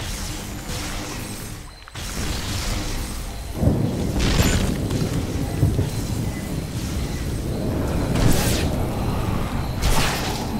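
Game sound effects of energy blasts and fighting play.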